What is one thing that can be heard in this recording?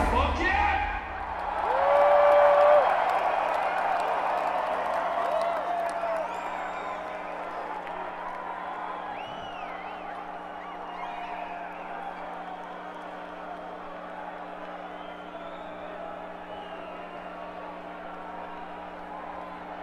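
A large crowd cheers and whistles loudly, then slowly quiets.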